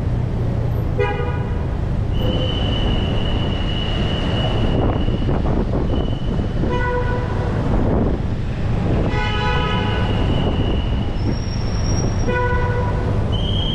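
A car horn beeps several times.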